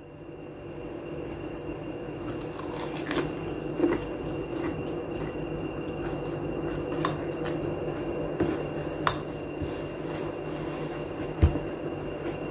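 A fork clinks against a metal bowl.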